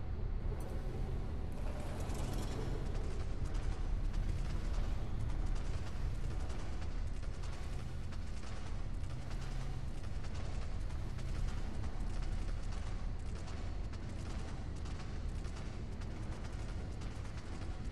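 Heavy footsteps of a large animal thud steadily on rock.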